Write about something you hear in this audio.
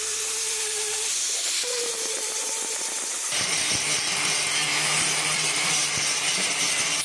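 An angle grinder whines loudly, grinding against hard plastic.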